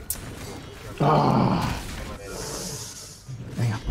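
Steel blades clash in a fight.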